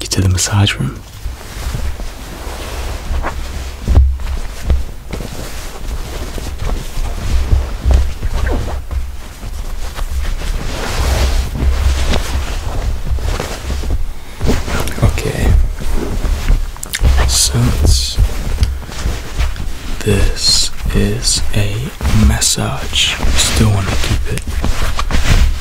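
Fabric rustles and shuffles as it is handled and smoothed.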